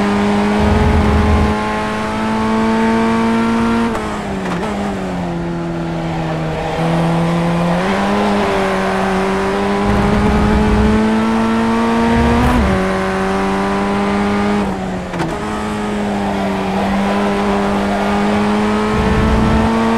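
A racing car engine whines loudly at high revs, dropping in pitch as it shifts down and climbing again through the gears.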